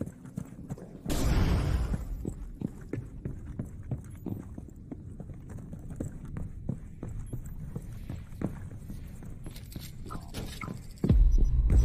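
Footsteps thud on wooden floors.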